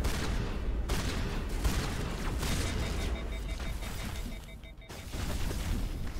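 Gunshots and energy blasts crackle from a video game.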